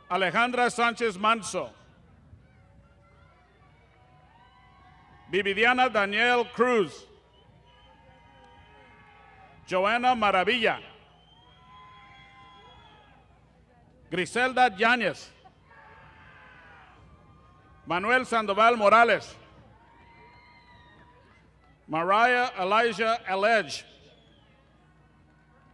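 A crowd cheers and claps far off in an open stadium.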